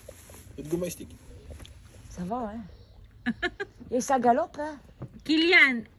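A young child talks softly close by.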